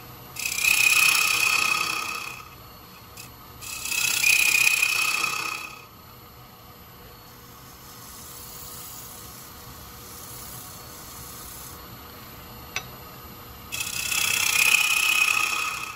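A file scrapes against spinning wood in loud, hissing bursts.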